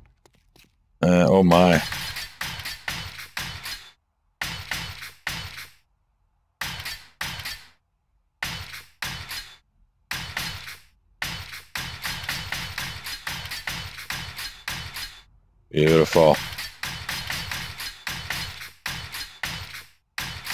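A tool knocks rapidly and repeatedly against a hard block.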